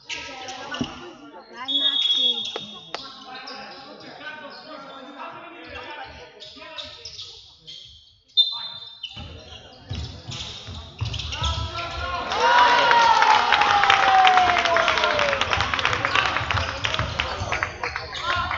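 Sneakers squeak on a wooden court in an echoing hall.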